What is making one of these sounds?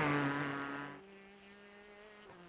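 A race car engine drones steadily in the distance.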